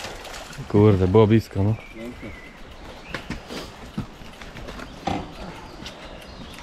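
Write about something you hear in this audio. Bicycle wheels splash through a muddy stream.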